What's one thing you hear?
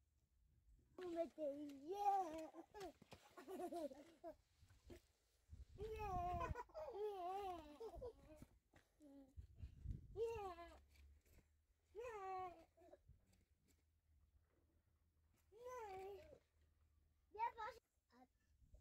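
A young girl talks with animation nearby.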